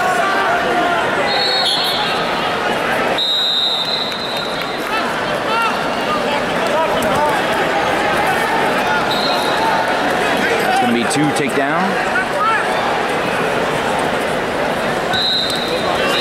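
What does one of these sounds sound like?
A large crowd cheers and shouts throughout a big echoing arena.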